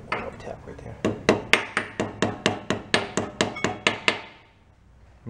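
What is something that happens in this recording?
A hammer taps sharply on metal in quick, even blows.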